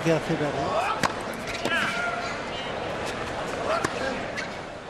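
A tennis ball is struck sharply by a racket.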